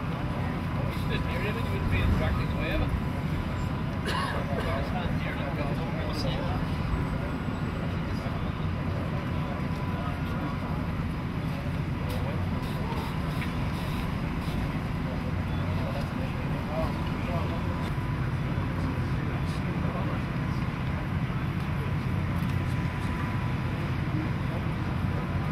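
A power pack engine rumbles steadily nearby.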